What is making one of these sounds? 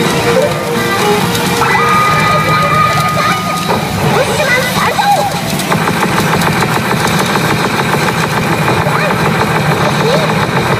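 A pachinko machine plays loud electronic music and sound effects.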